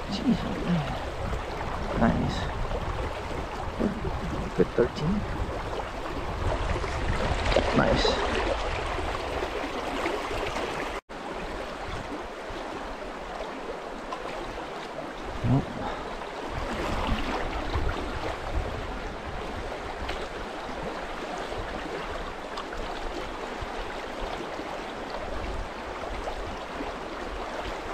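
A river rushes and ripples over stones close by.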